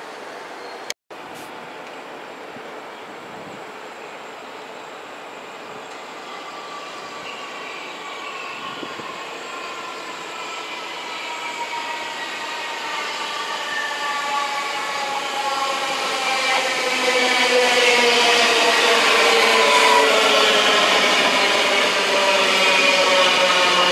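An electric train approaches and rushes past close by, its rumble growing louder.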